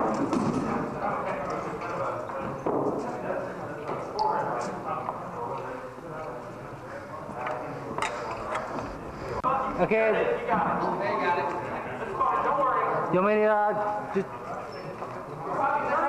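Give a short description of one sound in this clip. Men and women talk in a large echoing hall.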